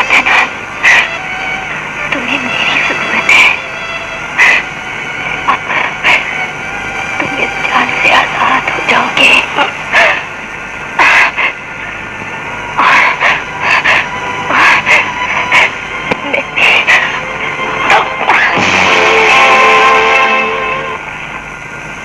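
A woman speaks tearfully and sobs, close by.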